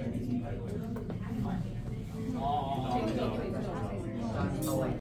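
People chat at tables nearby.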